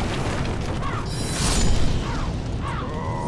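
A magic blast whooshes and bursts loudly.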